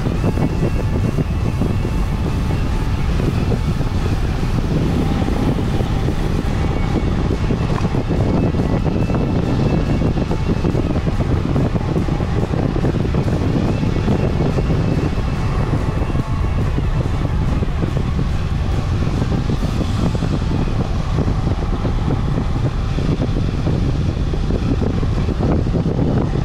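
Bicycle tyres hum on the road.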